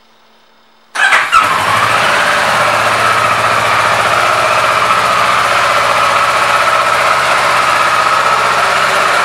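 A motorcycle engine starts and idles loudly and steadily.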